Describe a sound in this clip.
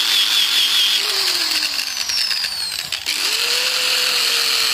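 An angle grinder's motor winds down and then starts up again.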